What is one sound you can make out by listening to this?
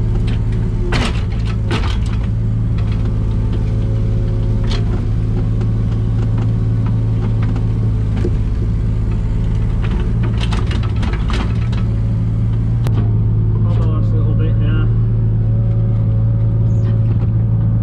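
A digger bucket scrapes and knocks against soil and stones.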